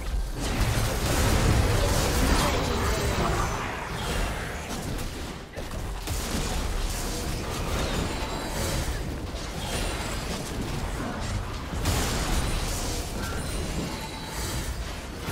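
Magic spells whoosh and crackle in a busy fight.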